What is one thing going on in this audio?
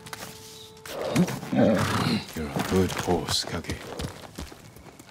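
A horse's hooves thud at a gallop.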